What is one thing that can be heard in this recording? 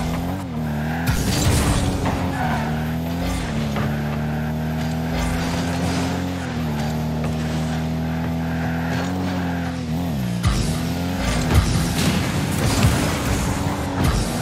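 A car engine hums steadily and shifts pitch as it boosts.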